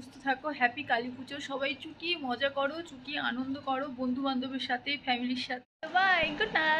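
A young woman talks animatedly and close to a microphone.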